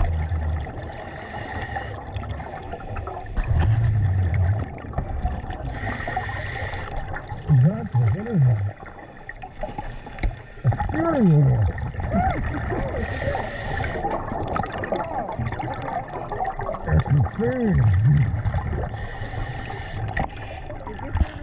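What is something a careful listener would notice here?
A diver's exhaled air bubbles out in bursts, muffled underwater.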